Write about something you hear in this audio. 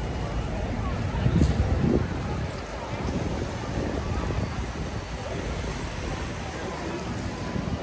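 A crowd of people talk in a busy outdoor street.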